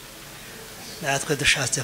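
An elderly man speaks through a microphone.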